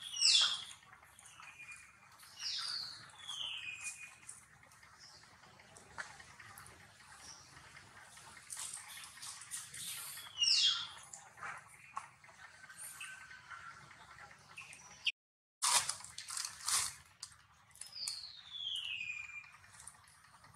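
A baby monkey gives high, falling squeals now and then.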